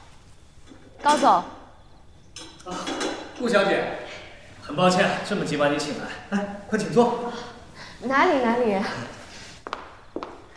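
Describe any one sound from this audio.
A young man speaks calmly in a large room.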